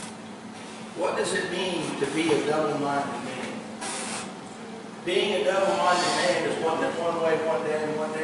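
A man speaks into a microphone, heard through loudspeakers in an echoing hall.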